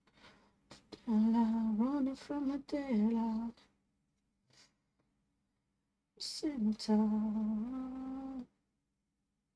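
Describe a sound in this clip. A young woman talks calmly into a microphone.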